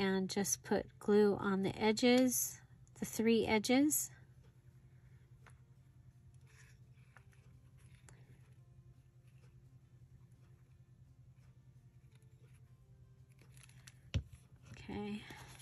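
Paper rustles as it is folded and handled.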